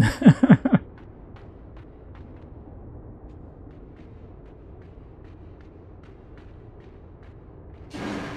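Light footsteps patter quickly across a hard surface.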